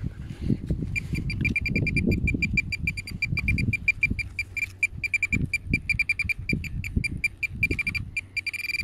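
A handheld metal finder buzzes in rapid, high chirps.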